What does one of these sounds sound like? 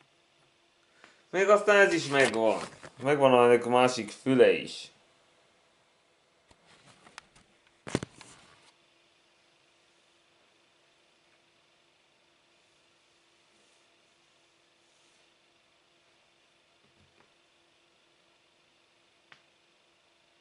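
Jigsaw puzzle pieces click softly as a hand picks them up.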